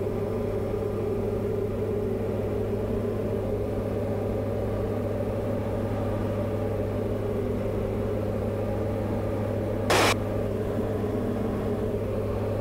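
A light plane's propeller engine drones steadily from inside the cabin.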